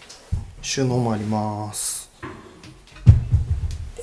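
A cabinet door clicks open.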